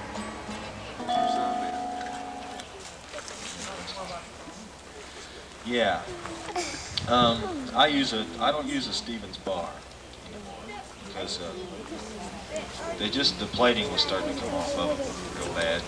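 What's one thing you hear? A lap steel guitar plays through loudspeakers.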